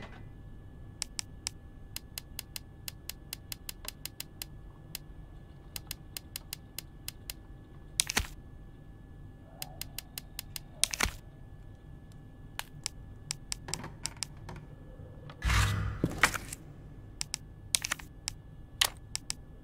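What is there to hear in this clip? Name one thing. Short menu clicks tick rapidly as a selection moves through a list.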